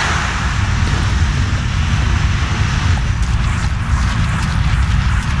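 Quick footsteps run on stone.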